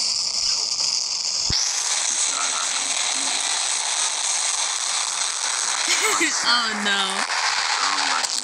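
Laser beams hiss and roar steadily.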